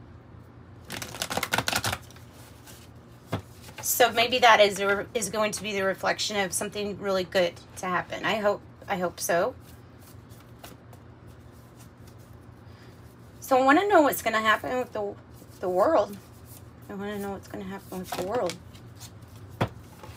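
Playing cards rustle and slap together as they are shuffled by hand.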